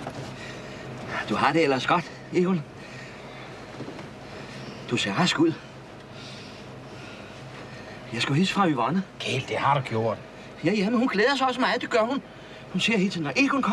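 Middle-aged men talk with animation inside a car.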